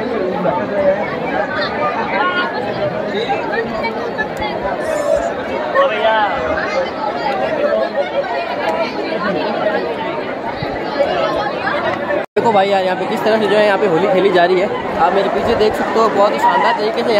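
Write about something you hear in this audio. A crowd chatters loudly all around, outdoors.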